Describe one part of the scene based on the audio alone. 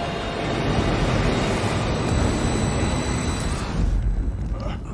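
Flames roar loudly.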